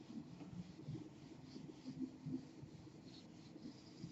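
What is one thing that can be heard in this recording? An eraser wipes across a whiteboard.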